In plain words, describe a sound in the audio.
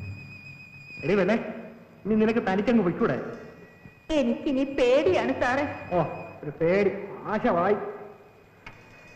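A young woman speaks with emotion close by.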